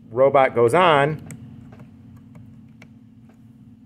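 Small plastic connectors click as they are plugged together.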